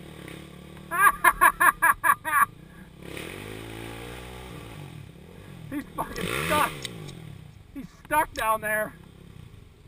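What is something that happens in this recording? A dirt bike engine revs in short, sharp bursts.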